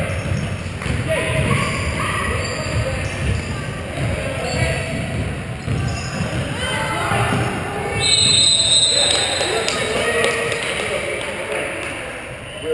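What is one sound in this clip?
Players call out to each other across an echoing hall.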